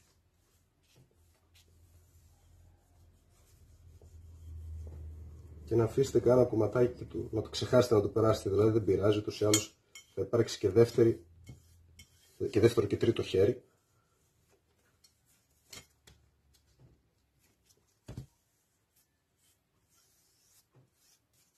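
A metal tool knocks softly against a table.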